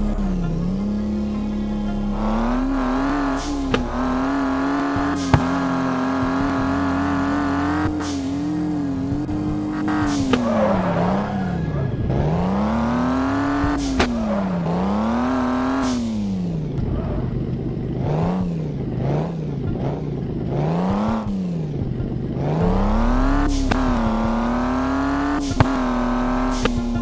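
A car engine revs up and down, rising and falling in pitch.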